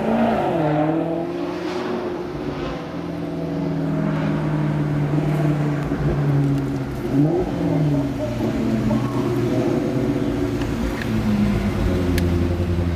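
A sports car engine ahead revs up and down with a deep roar.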